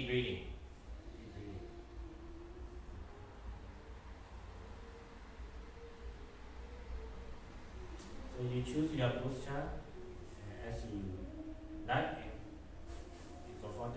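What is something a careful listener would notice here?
A young man chants slowly and melodically into a microphone.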